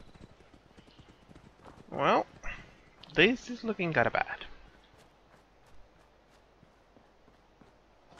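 Footsteps crunch softly over grass and dirt.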